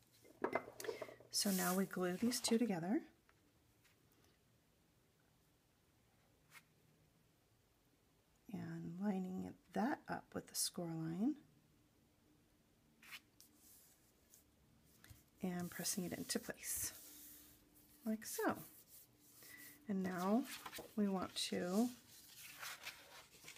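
Paper rustles and crinkles as hands fold it.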